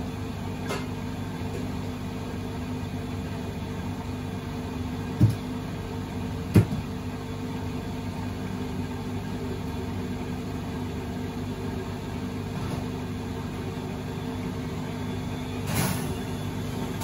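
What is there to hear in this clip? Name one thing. Laundry thumps and knocks inside a turning washing machine drum.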